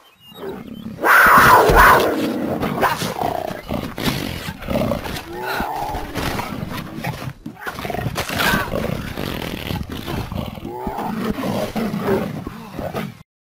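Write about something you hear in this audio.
A big cat snarls and growls fiercely.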